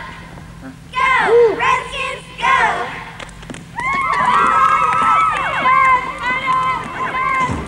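Young women chant a cheer in unison in an echoing hall.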